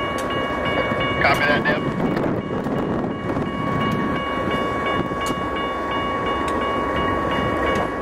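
A train rumbles past on the tracks.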